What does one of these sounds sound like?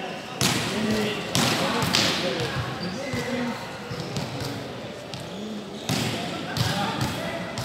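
A volleyball smacks off a player's hands.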